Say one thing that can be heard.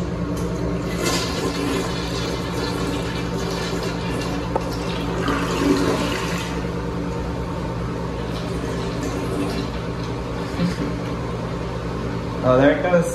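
Water rushes and swirls loudly as a toilet flushes.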